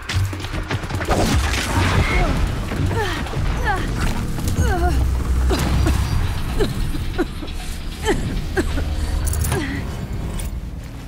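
A mechanical beast screeches and whirs in chirping bursts.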